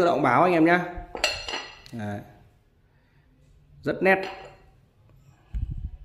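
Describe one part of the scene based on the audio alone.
A ceramic bowl clinks against a saucer.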